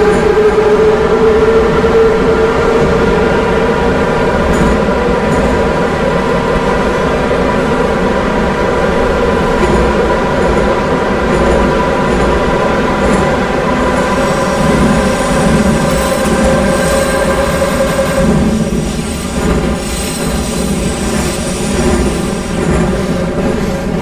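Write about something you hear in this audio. A train's electric motor whines steadily as the train runs.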